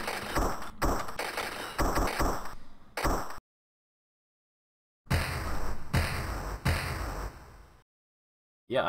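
Arcade game sound effects crash and bang in quick bursts.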